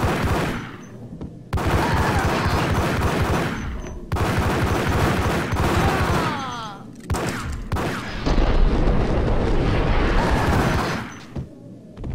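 Pistols fire in rapid bursts of loud gunshots.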